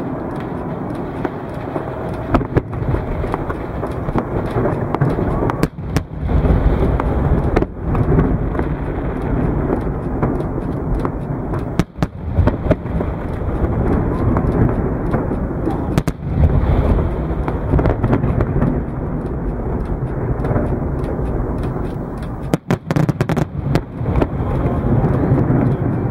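Fireworks boom and thud, echoing outdoors.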